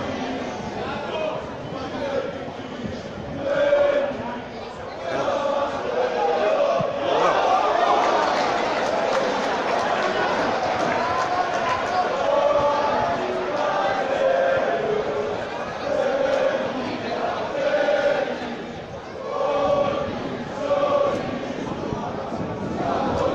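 Men in a crowd shout and cheer nearby.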